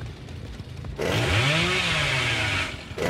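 A chainsaw revs loudly.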